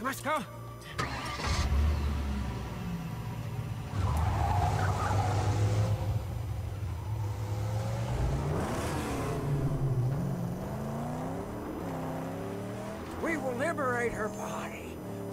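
A car engine rumbles and revs.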